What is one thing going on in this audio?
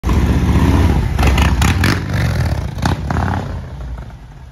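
A motorcycle engine revs loudly with deep roars.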